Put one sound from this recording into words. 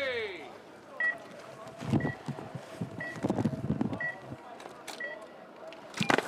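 Short electronic start beeps sound at an even pace.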